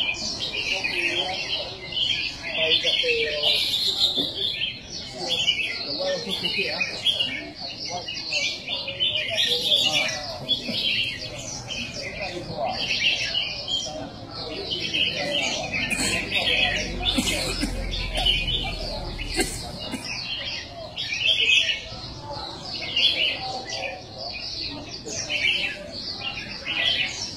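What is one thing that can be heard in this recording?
Many caged songbirds chirp and twitter busily all around.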